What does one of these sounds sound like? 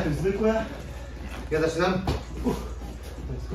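A man talks briefly.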